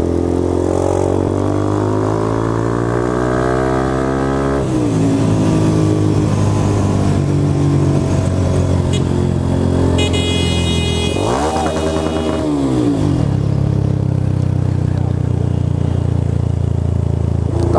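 A motorcycle engine hums close by, rising in pitch as it accelerates and dropping at each gear change.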